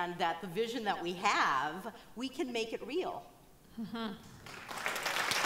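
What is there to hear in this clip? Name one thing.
A woman speaks with animation into a microphone in a large hall.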